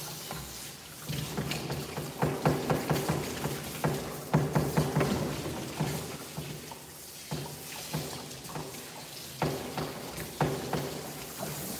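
A dog pants heavily and quickly close by.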